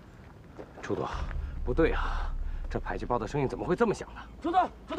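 A man speaks with agitation, close by.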